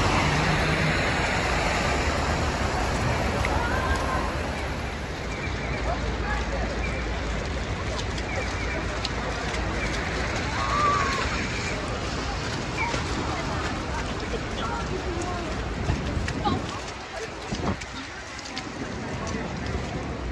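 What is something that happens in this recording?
Footsteps crunch on slushy snow.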